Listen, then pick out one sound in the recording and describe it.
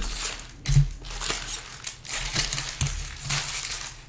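Plastic card packs rustle and slap as they are handled.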